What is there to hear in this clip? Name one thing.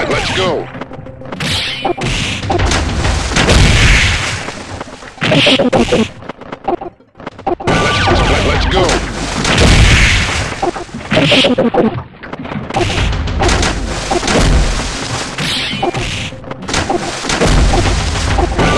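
Game sound effects of punches and blasts hit in quick bursts.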